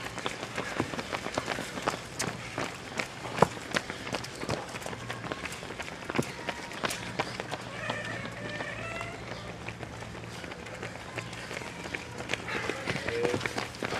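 Running footsteps pat on paving, passing close by.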